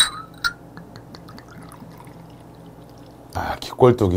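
Liquid pours into a small glass.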